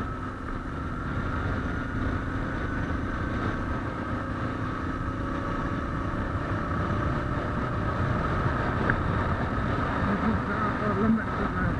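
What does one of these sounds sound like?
A single-cylinder dual-sport motorcycle engine thumps along at cruising speed.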